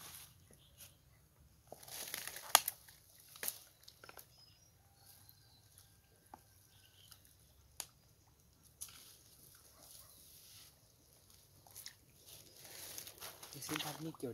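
Dry grass and twigs crunch and rustle underfoot close by.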